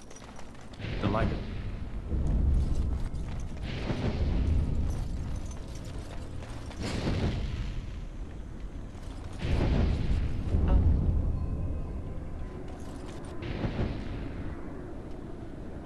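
Magic fire bursts with loud roaring whooshes, again and again.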